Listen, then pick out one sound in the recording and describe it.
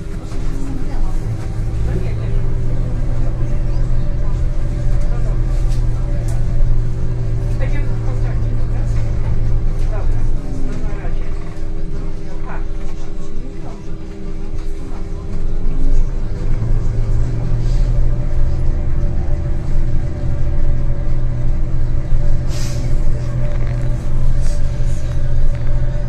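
A bus engine hums low and steadily from inside as the bus drives along a street.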